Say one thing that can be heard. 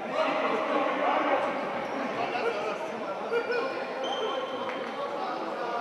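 A crowd murmurs and chatters throughout a large echoing gym.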